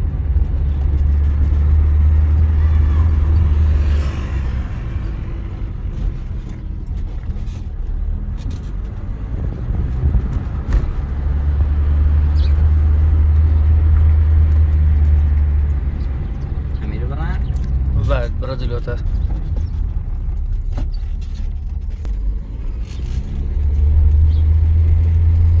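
A car engine rumbles steadily from inside the car as it drives.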